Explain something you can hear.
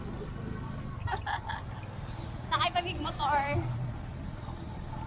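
Young women talk close by with animation.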